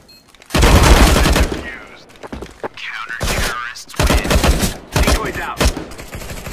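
Sniper rifle shots boom loudly.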